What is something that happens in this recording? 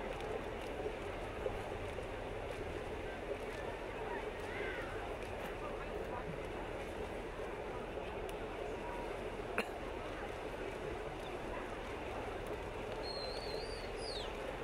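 Swimmers splash steadily through the water.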